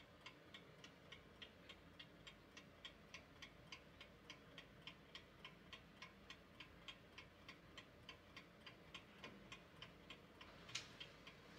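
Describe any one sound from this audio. A clock ticks steadily and briskly.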